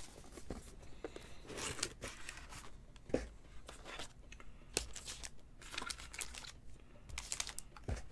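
Hands open a cardboard box with rustling and scraping.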